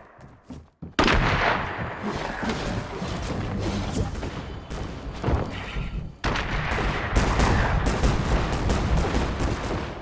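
Wooden panels clatter as they are quickly built in a video game.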